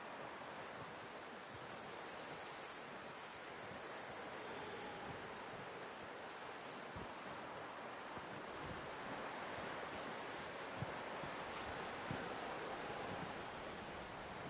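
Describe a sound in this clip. Wind howls steadily outdoors in a snowstorm.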